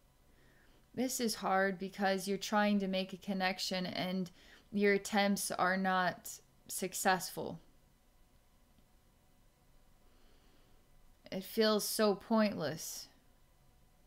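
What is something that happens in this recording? A woman speaks calmly and softly into a close microphone, with long pauses.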